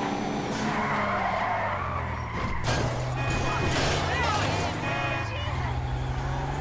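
Tyres screech as a car slides around a corner.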